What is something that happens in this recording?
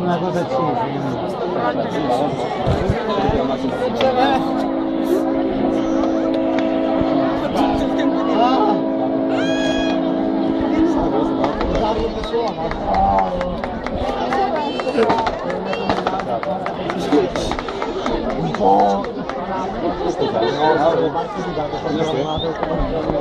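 Fireworks pop and bang now and then.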